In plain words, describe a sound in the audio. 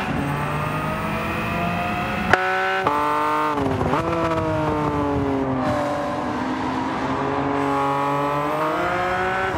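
A sports car engine roars, its pitch rising and falling as it shifts gears.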